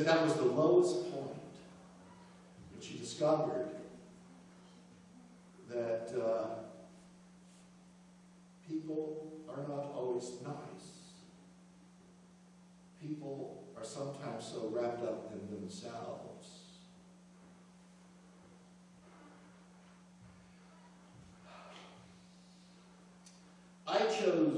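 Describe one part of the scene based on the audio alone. A man speaks calmly into a microphone in a large echoing hall, pausing between phrases.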